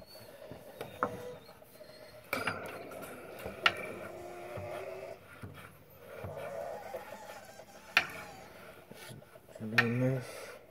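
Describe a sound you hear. A metal pump handle clanks as it is pushed down.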